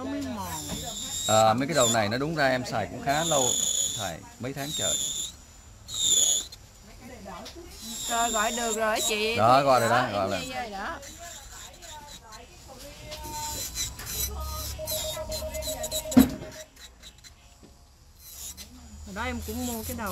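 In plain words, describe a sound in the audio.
An electric nail drill whirs as it files a nail.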